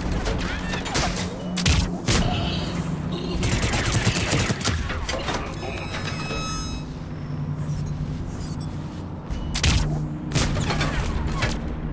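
Gunshots crack in short, rapid bursts.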